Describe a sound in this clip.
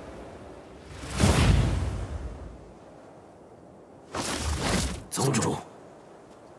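Wings whoosh past in rushing gusts.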